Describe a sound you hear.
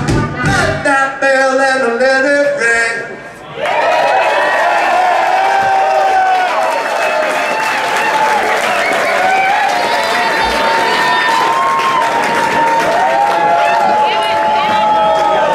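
A band plays loud electric guitars and drums in a live room.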